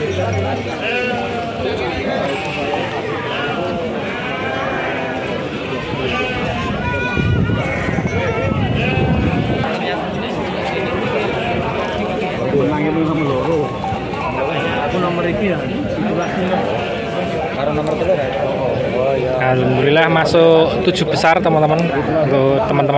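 A crowd of men chatter nearby outdoors.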